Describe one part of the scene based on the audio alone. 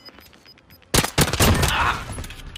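Rapid gunfire rattles in a loud burst.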